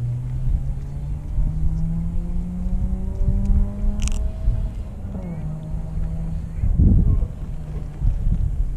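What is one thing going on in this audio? A boat engine drones steadily, its pitch slowly rising and then dropping.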